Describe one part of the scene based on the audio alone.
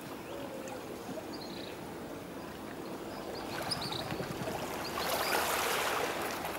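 Calm water laps softly against the shore.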